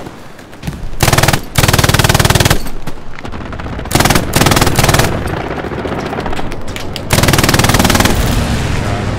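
A heavy machine gun fires loud rapid bursts.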